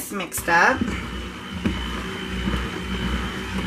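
A stick blender whirs in a bowl of liquid.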